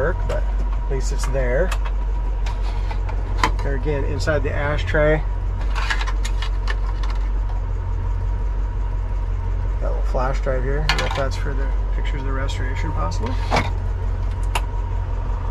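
A small metal tray clicks and rattles as it is handled.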